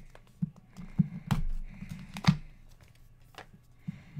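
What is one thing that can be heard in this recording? Plastic wrap crinkles and tears as a box is opened.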